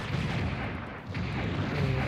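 A beam weapon fires with a buzzing hum.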